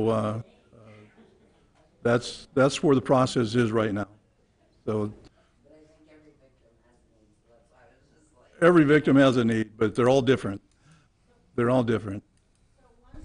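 A man speaks through a microphone in short bursts with pauses.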